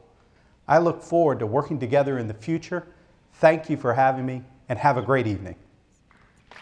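A man speaks clearly and warmly into a close microphone.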